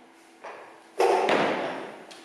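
Weight plates clank as a man heaves a heavy barbell off the floor.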